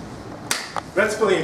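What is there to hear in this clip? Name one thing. A young man speaks loudly and cheerfully.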